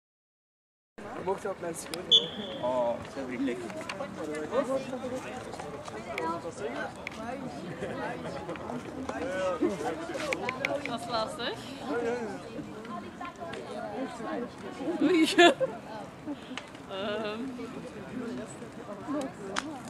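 A young woman speaks loudly to a group outdoors.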